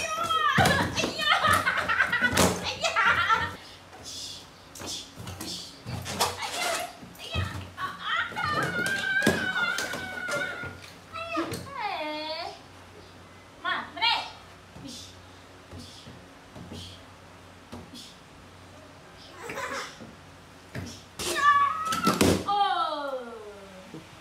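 A woman talks playfully and with animation close by.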